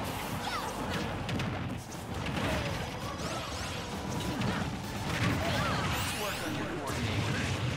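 Video game fighters clash with rapid punches, whooshes and impact effects.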